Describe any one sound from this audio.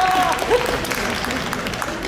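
A woman laughs on stage.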